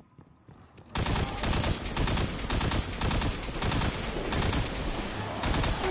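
Rapid gunfire blasts loudly and steadily.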